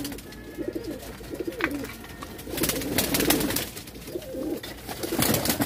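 Pigeons coo softly and repeatedly close by.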